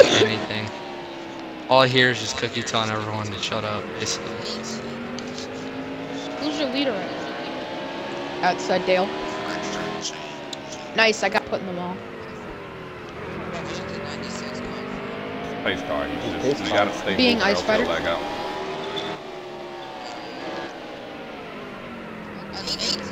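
A race car engine roars steadily, its pitch rising and falling as the car speeds up and slows down.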